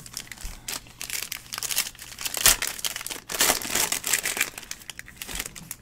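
A foil pack crackles and tears open.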